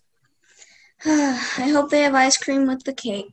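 A young woman shouts in alarm over an online call.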